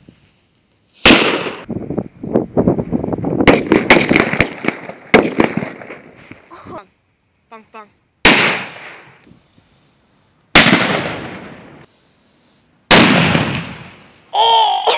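Fireworks explode with loud booming bangs that echo and fade.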